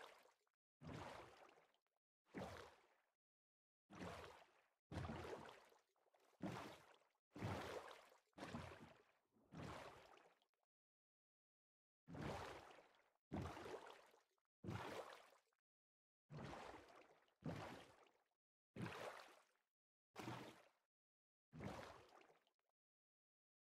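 Video-game water splashes come in short bursts as a character swims.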